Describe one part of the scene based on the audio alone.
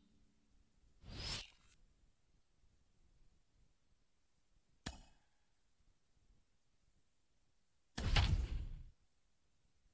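Soft whooshes sweep past.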